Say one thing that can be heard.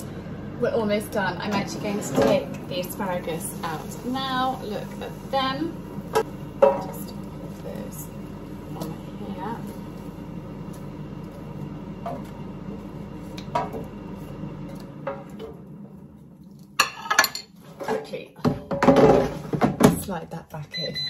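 A fryer basket slides out and clatters.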